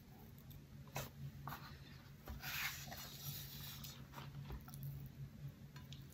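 Chopsticks clack against a plate of noodles.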